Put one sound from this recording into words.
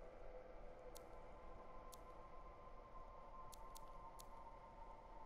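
Short, sharp menu clicks tick as a selection moves.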